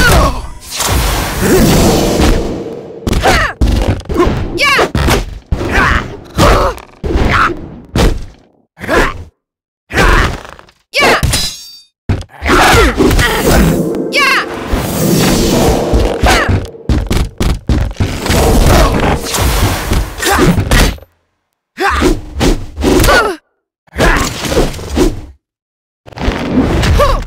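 Heavy blows thud against bodies.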